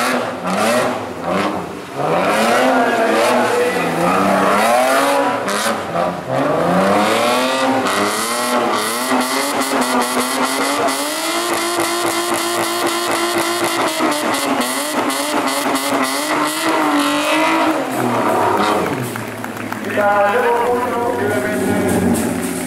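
A rally car engine revs hard, rising and falling while drifting.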